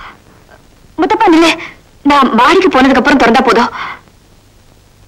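A man speaks loudly and with agitation.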